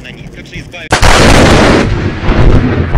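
A loud explosion bursts with a roar outdoors.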